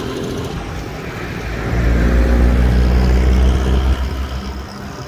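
A motor scooter's engine passes close by.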